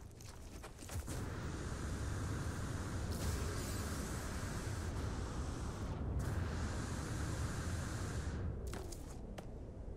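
A strong wind roars and howls.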